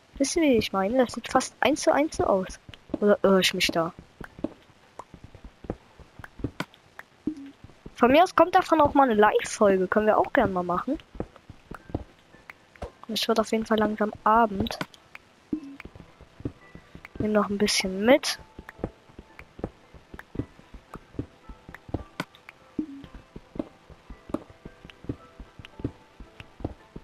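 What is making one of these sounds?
A pickaxe taps and chips at stone blocks in a video game.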